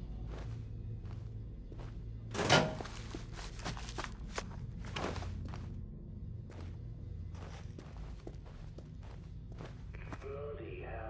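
Footsteps tread slowly on a hard floor.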